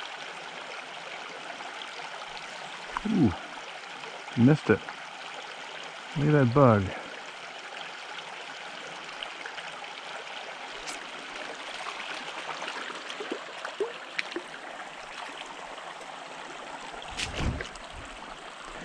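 A shallow stream trickles steadily over rocks outdoors.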